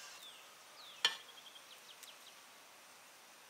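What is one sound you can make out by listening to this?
A knife scrapes and taps on a plate.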